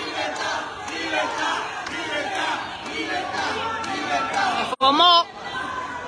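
A crowd chants and cheers outdoors.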